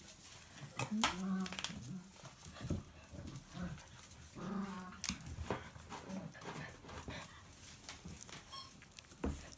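Dogs' claws patter on a hard floor.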